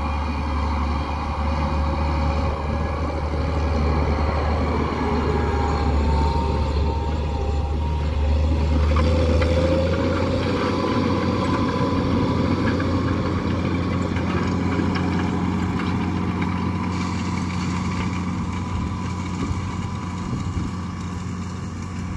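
A disc harrow rattles and scrapes through the soil.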